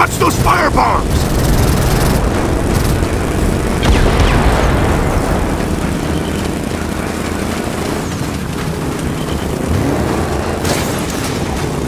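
A motorbike engine roars steadily at speed.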